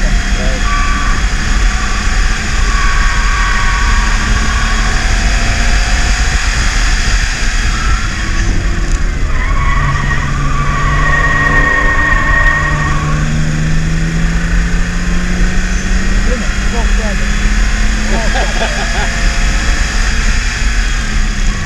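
A car engine roars steadily, rising and falling in pitch as the car speeds up and slows down.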